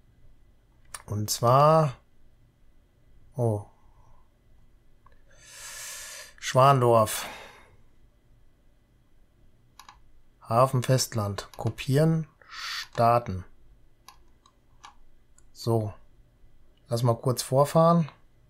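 A middle-aged man talks calmly and closely into a microphone.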